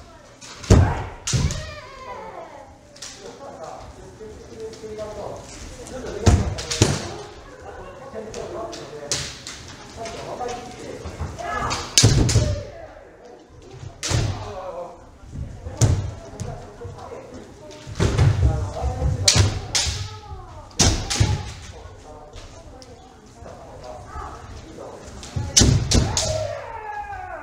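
Bare feet stamp on a wooden floor.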